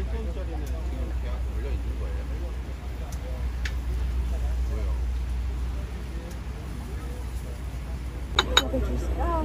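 Waves wash gently onto the shore.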